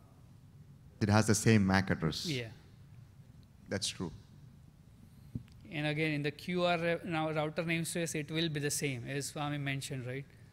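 A man speaks through a microphone in a large hall, explaining calmly.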